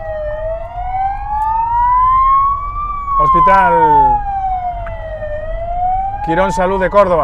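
A siren wails up and down nearby.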